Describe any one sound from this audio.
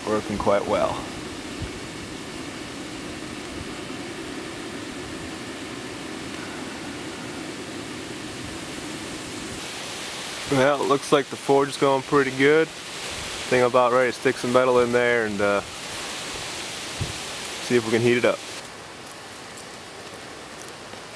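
A fire crackles and hisses softly.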